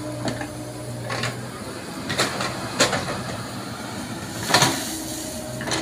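An excavator bucket scrapes and thuds into soil.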